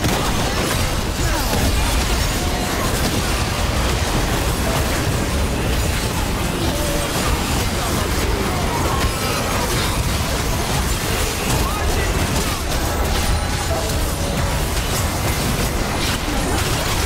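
Game spells crackle, whoosh and burst in a hectic fight.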